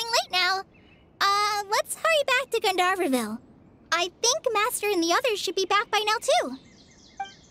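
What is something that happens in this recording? A young woman speaks cheerfully and brightly.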